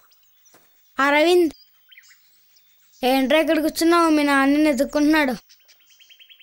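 A boy speaks nearby.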